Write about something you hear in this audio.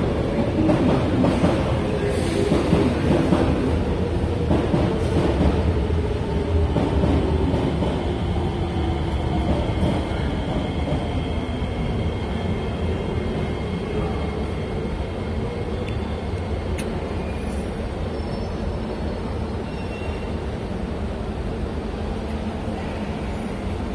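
A train hums steadily while standing at a platform.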